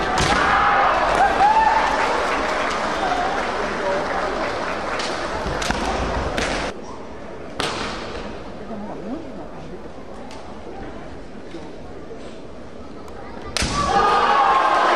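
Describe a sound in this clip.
Young fighters shout sharply in a large echoing hall.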